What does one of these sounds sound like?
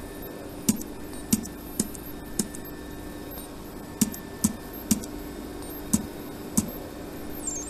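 Keys on a keypad click one at a time as they are pressed.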